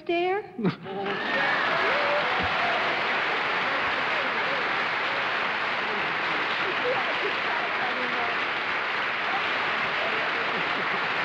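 A crowd laughs loudly and steadily.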